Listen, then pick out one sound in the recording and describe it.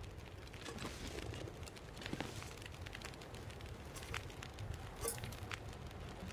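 A fire crackles softly in a wood stove.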